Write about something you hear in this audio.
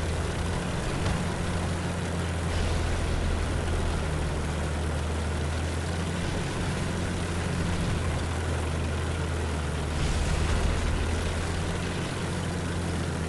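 Tank tracks clatter and crunch over rough ground.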